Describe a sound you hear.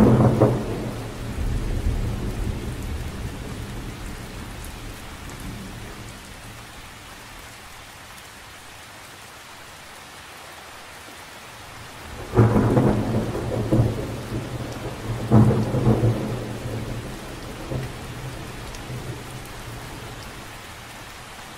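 Rain patters steadily on the surface of a lake.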